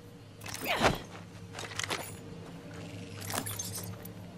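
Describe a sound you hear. A game character's footsteps crunch on grass.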